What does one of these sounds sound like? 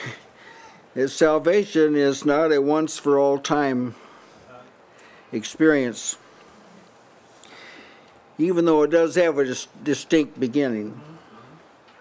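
An elderly man speaks with emphasis into a microphone, in bursts with pauses.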